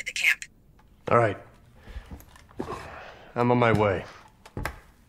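A man speaks calmly and briefly, close by.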